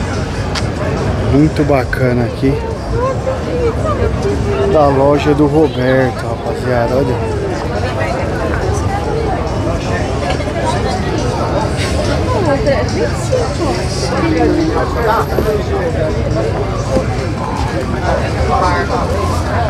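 Several adults chatter and talk nearby.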